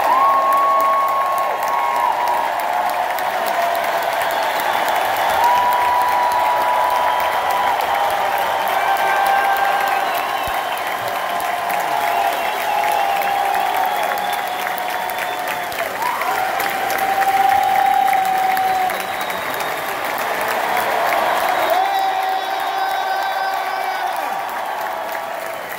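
A large crowd cheers and applauds in an echoing arena.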